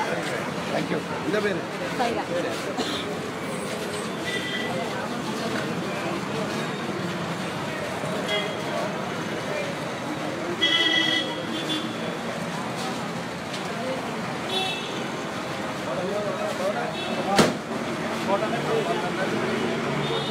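A crowd of men talks and shouts loudly all around, close by.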